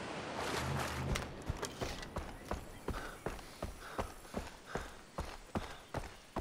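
Footsteps crunch on sand at a steady walking pace.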